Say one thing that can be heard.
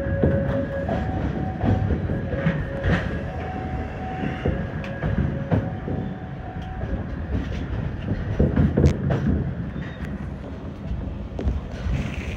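Train wheels clack over rail joints and switches.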